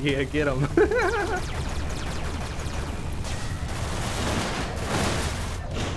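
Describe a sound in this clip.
Spaceship lasers fire in quick bursts.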